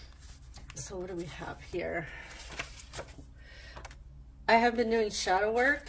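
Paper cards slide and tap softly on a table.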